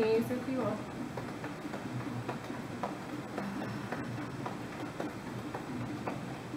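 Hands tap rhythmically on chests.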